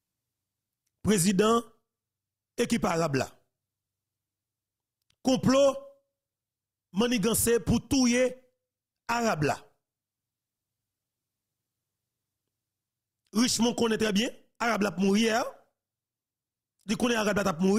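A man speaks closely into a microphone in short, animated bursts with pauses between.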